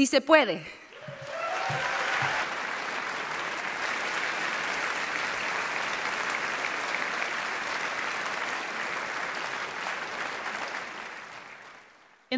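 A large audience applauds and cheers in a large echoing hall.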